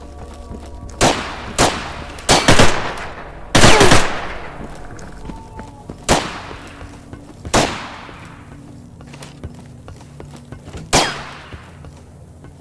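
Gunshots fire in short bursts and ring out with echoes.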